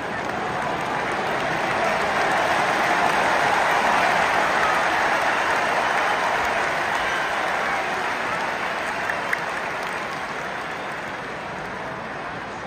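A large stadium crowd roars and chants loudly all around, then slowly quietens.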